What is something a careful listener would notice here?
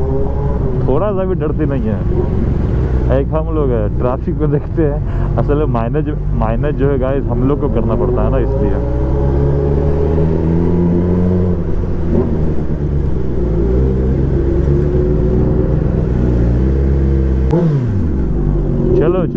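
A motorcycle engine revs up and down close by.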